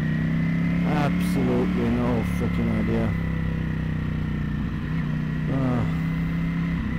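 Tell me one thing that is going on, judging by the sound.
A motorcycle engine revs up in quick rising bursts as gears shift.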